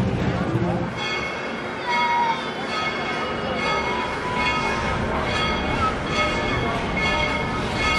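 A chairlift hums and creaks as it moves along its cable.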